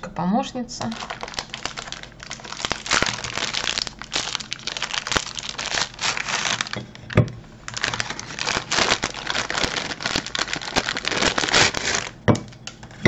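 A plastic wrapper crinkles and rustles as it is handled.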